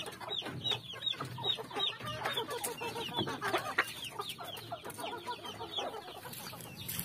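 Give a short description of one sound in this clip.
Chickens cluck and chirp close by.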